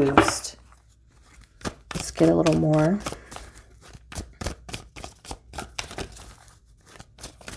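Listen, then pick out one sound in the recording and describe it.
A deck of cards is shuffled with quick soft taps and rustles.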